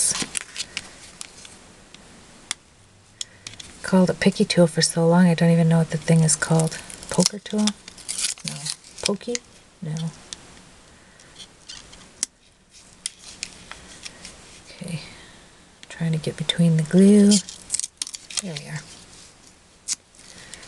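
A small tool taps and scrapes on paper.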